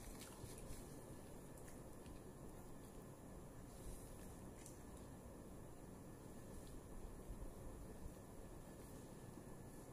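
A woman chews food close by.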